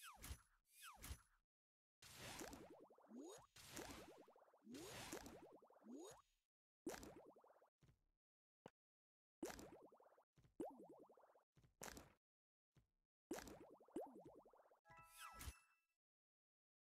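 Puzzle game blocks pop and burst in quick swooping chimes.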